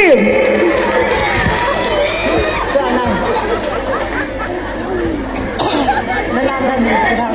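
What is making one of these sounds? Many voices of a crowd chatter and call out outdoors.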